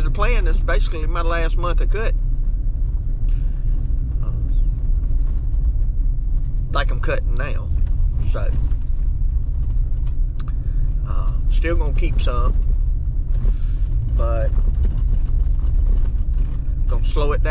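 A vehicle engine hums low and steady while driving.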